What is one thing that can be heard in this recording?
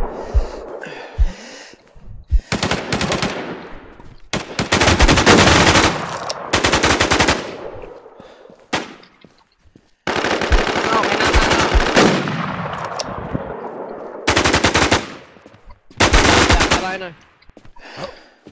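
Rifle shots crack loudly and echo away.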